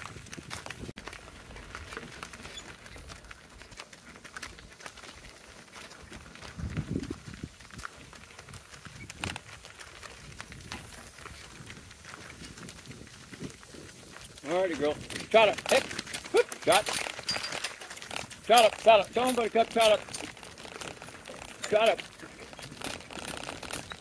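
A donkey's hooves clop on a dirt track.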